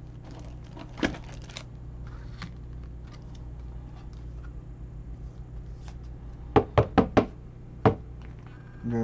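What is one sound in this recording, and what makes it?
Trading cards rustle and click as hands handle them.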